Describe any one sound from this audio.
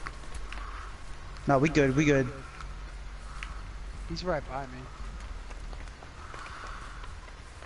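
Footsteps crunch slowly over leaves and twigs on a forest floor.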